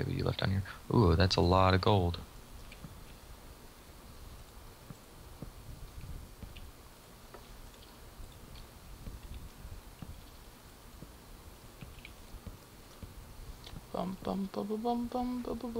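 Wooden blocks are set down with soft, hollow knocks.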